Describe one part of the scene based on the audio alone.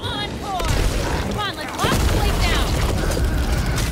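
A creature snarls and shrieks.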